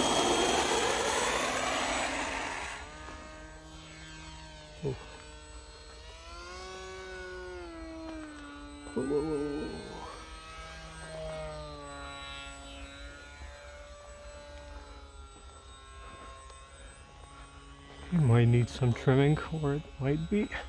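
A model plane's motor buzzes loudly as it takes off, then whines from above, rising and falling in pitch.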